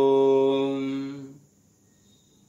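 An elderly man chants a long, steady note close to a microphone.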